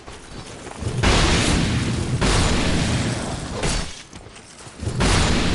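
A sword clashes and slashes in a fight.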